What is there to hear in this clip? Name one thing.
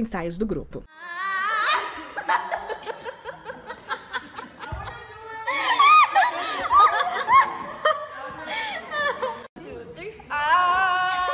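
Young women laugh loudly and shriek close by.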